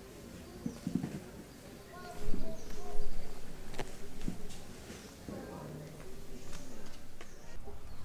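A newborn macaque suckles at its mother's nipple.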